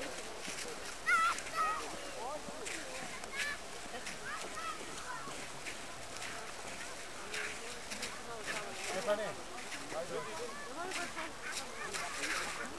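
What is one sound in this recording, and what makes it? Young people shout and laugh playfully at a distance outdoors.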